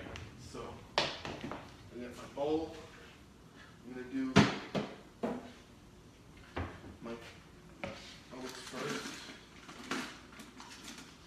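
Containers knock and clatter on a hard surface.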